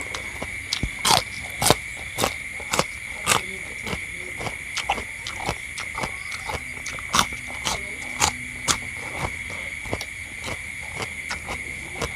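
A middle-aged man bites into a raw bitter gourd and crunches it.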